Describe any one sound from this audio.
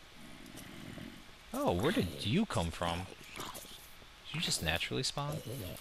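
A zombie groans nearby.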